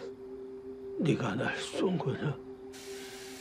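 A second man answers in a low, shaken voice.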